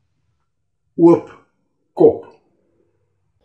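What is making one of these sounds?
A man speaks briefly close to a phone microphone.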